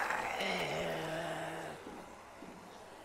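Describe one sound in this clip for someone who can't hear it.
Zombies groan and snarl.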